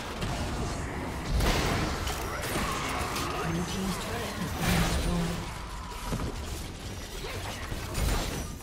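Magic blasts and sharp impacts crackle during a fast battle.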